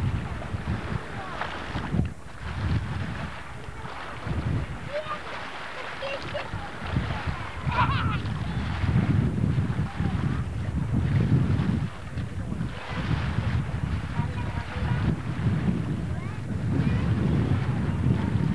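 Wind buffets the microphone in gusts outdoors.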